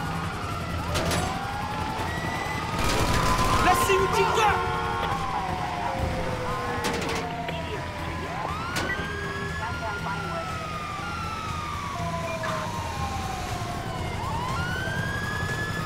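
Police sirens wail, rising and falling.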